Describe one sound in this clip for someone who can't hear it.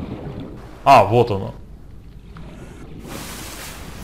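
Water splashes and sloshes at the surface.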